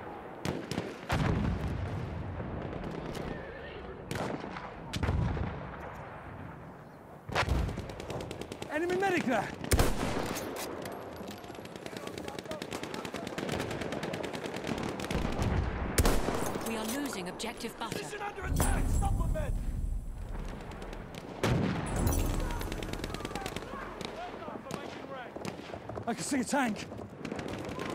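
Gunfire and explosions rumble in the distance.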